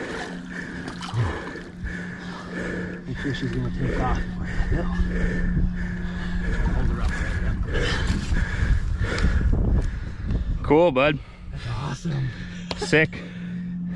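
A large fish splashes in shallow river water.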